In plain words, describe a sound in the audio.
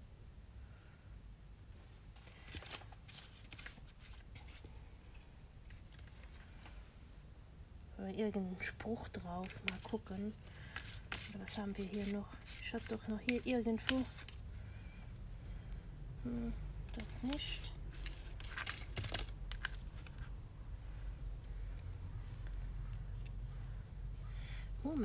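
Paper rustles and slides as hands handle cardstock.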